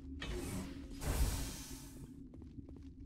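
A heavy metal door slides open with a loud hiss.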